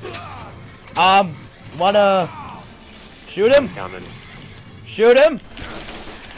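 A man grunts and cries out loudly with strain, in short bursts.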